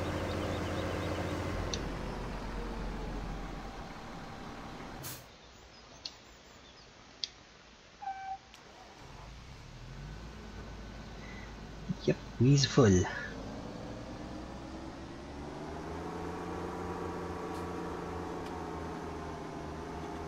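A tractor engine drones steadily, dropping away briefly and then rising again.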